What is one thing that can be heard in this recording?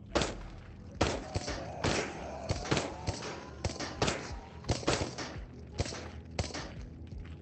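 Glass shatters and debris clatters.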